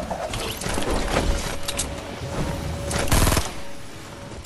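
Wooden boards clatter as structures are quickly built.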